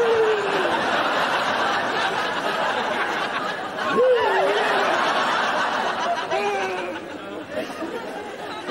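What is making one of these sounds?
A crowd of people chatters and laughs.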